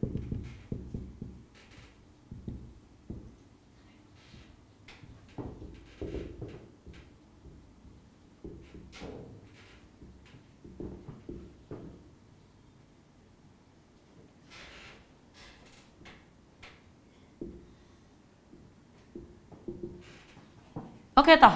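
A marker squeaks on a whiteboard in short strokes.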